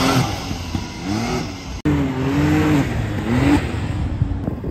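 An off-road buggy engine revs up and down.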